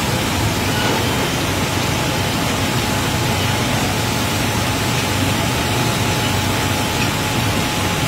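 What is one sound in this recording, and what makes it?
A cargo loader's engine hums steadily outdoors.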